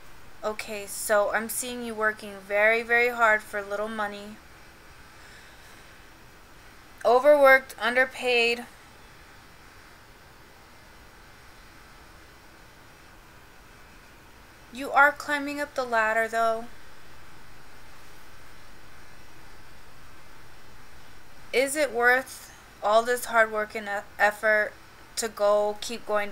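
A young woman talks calmly and closely into a microphone, pausing between phrases.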